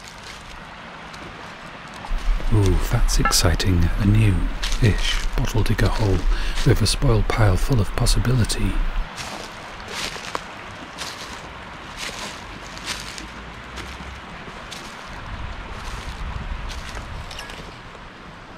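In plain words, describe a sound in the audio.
A stream trickles nearby.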